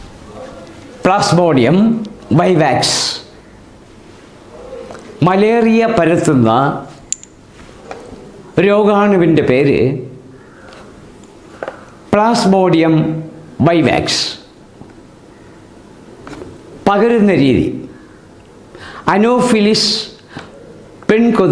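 An elderly man speaks calmly and clearly, close by.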